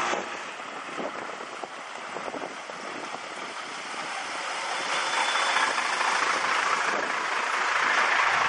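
A truck engine rumbles loudly as the truck drives close past.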